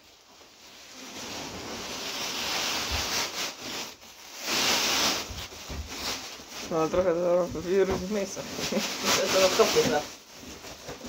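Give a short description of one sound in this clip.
Sawdust pours out of a sack onto the ground with a soft rushing hiss.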